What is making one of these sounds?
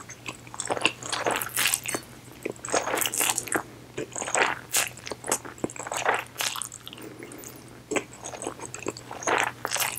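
A woman chews wetly with smacking sounds, close to a microphone.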